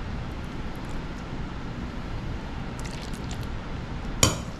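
A metal spoon scrapes food softly into a glass dish.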